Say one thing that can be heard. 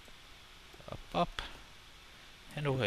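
A pickaxe chips at stone with short knocks.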